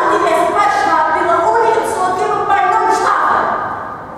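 A woman sings in a clear voice.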